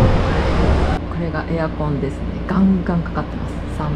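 A window air conditioner hums.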